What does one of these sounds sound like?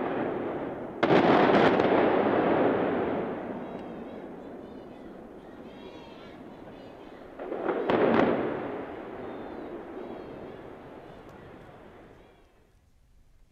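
A tall concrete tower collapses with a long, rolling rumble that slowly fades.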